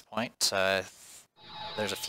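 A magical spell shimmers and sparkles.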